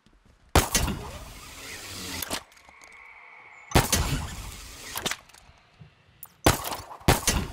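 A grappling line whirs and rushes as it reels in.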